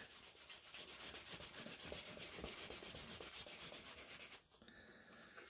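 A wooden tool rubs quickly back and forth against leather.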